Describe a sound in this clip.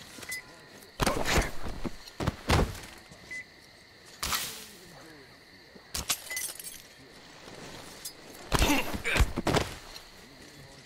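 Leaves and branches rustle loudly as someone pushes through dense bushes.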